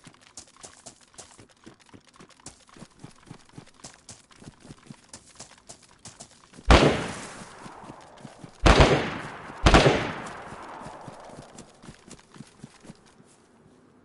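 Footsteps rustle through tall grass at a steady walking pace.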